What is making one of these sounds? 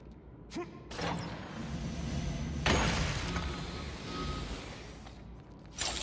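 Magic energy crackles and bursts loudly.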